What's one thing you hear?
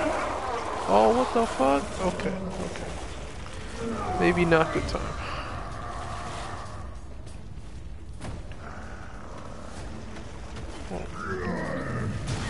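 Flames crackle and roar nearby.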